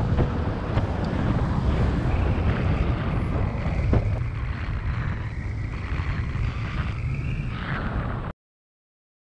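Strong wind roars and buffets against a microphone.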